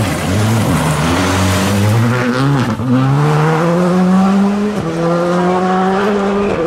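A rally car engine roars loudly, revving up and dropping through gear changes.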